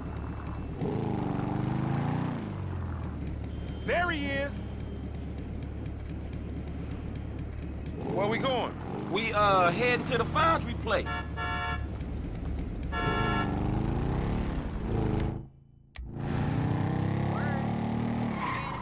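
A motorcycle engine rumbles and revs up and down.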